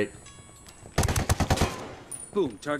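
Rapid gunshots ring out.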